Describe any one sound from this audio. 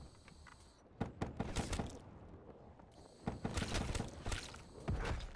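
Rapid gunshots crackle from a video game.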